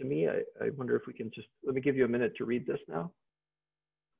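A man speaks calmly into a microphone, heard as over an online call.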